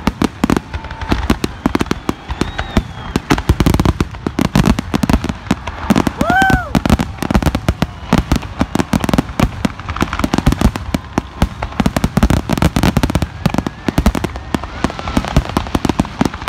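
Fireworks whistle as they shoot up.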